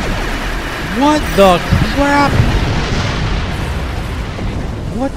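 A ship explodes with a loud, booming blast.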